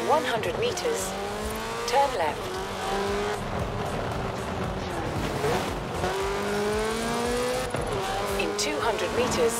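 A car engine revs high and shifts through gears.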